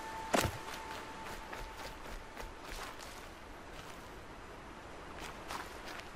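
Footsteps thud and rustle through grass.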